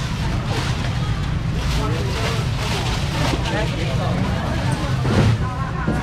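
Plastic bags rustle as a young man fills them.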